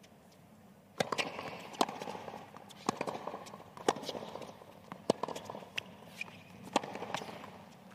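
Rackets strike a tennis ball back and forth in a steady rally.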